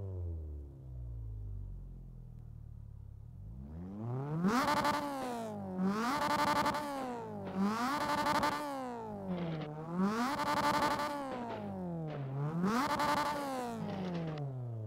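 A car engine idles, then revs up and down repeatedly with a loud rasp.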